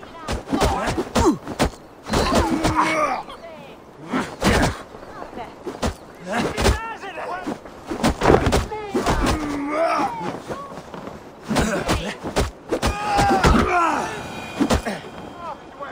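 Heavy blows land with dull thuds and clanks.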